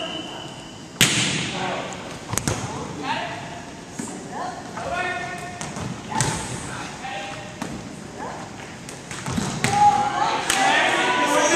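A volleyball thumps off players' hands and arms, echoing in a large hall.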